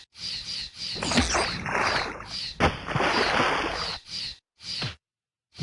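Snow hisses as a game character slides downhill.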